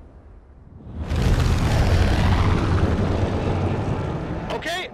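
A large propeller airplane roars loudly overhead.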